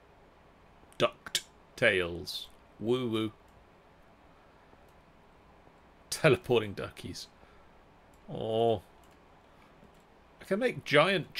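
A middle-aged man talks with animation into a close microphone, in short bursts.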